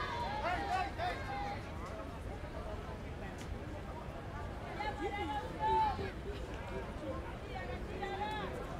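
Young women cheer and chant loudly at a distance outdoors.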